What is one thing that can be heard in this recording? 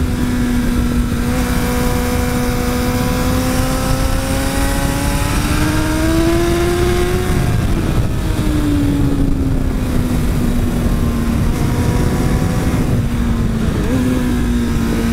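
A motorcycle engine revs high, rising and falling in pitch through the gears.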